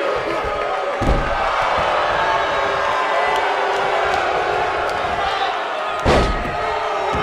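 Heavy bodies thud loudly onto a wrestling ring mat.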